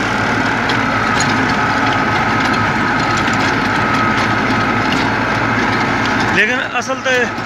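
A rotary tiller churns through the soil.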